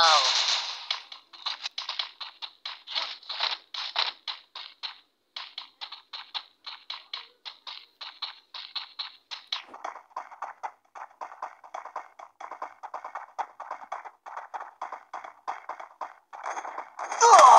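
Quick running footsteps patter in an even rhythm.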